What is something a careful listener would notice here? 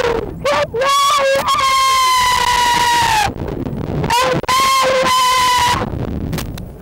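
A young woman screams loudly and shrilly close by.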